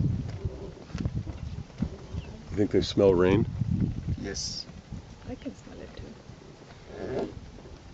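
Hooves thud on the ground as a herd of wildebeest runs past.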